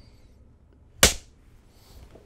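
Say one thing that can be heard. A clapperboard snaps shut with a sharp clack.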